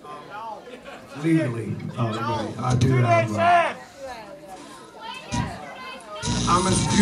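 Men and women in a crowd chatter nearby.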